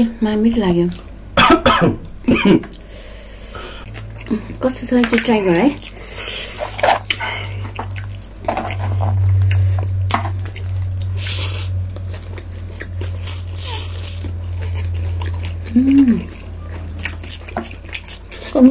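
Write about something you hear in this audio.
A fork and chopsticks clink against dishes.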